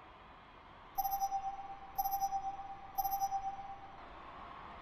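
Three short electronic beeps count down.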